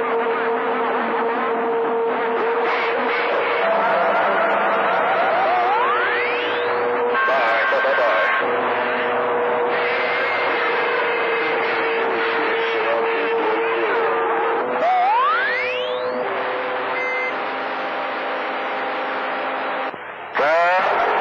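A radio loudspeaker hisses and crackles with garbled, overlapping transmissions.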